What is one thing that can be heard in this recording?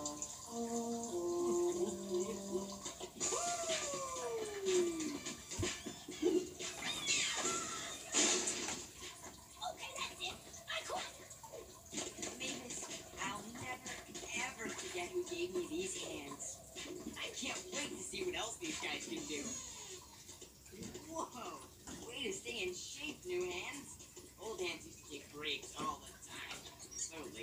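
Cartoon music and sound effects play from a television.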